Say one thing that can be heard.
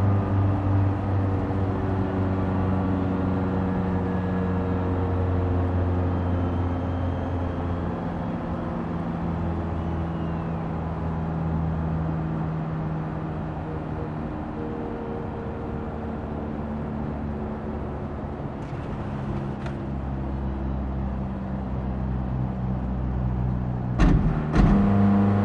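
A racing car engine roars steadily at high speed, its pitch slowly dropping as the car slows.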